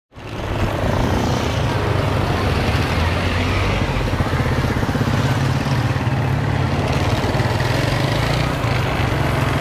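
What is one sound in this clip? A motorcycle engine hums steadily close by as it rides along.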